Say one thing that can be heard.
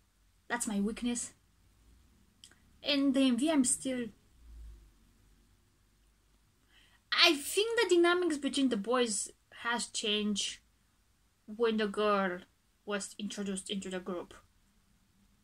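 A young woman talks calmly and close up, in short bursts with pauses.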